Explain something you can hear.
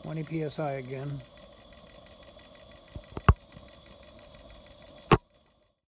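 A small steam engine chugs softly and steadily.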